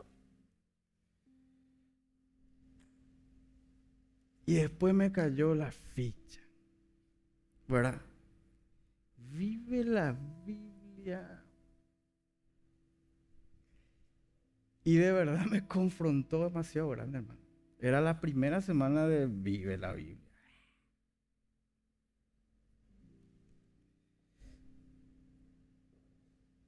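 A keyboard plays soft sustained notes.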